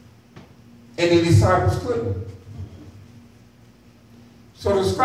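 A man preaches with feeling through a microphone and loudspeakers in an echoing room.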